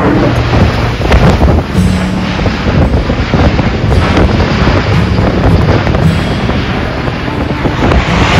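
Propeller engines of a large plane drone overhead.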